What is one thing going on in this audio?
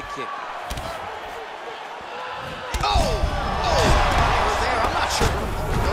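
A crowd cheers and roars.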